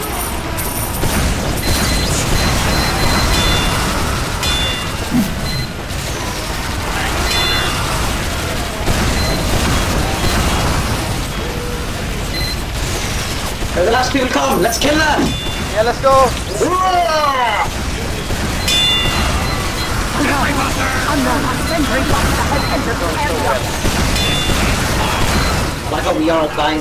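Gunfire and explosions boom and rattle in rapid bursts.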